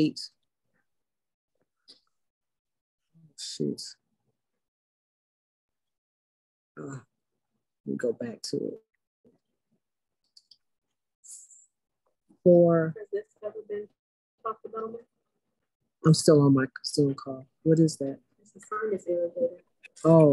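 A middle-aged woman speaks with animation over an online call, with pauses.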